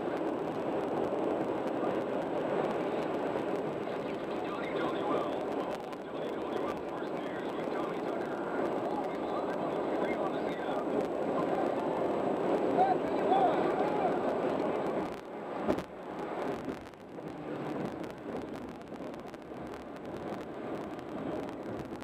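Tyres roar steadily on a highway from inside a moving car.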